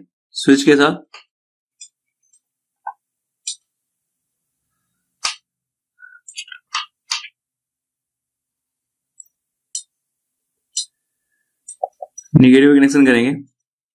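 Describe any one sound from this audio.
Small metal clicks as a probe taps a wire.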